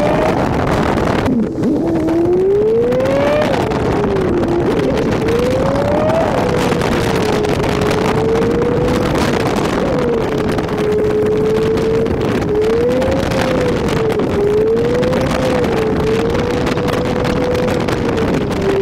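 A car engine hums steadily, rising and falling in pitch as the car drives.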